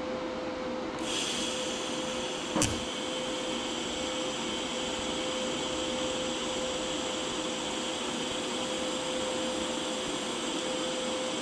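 A welding torch crackles and hisses steadily.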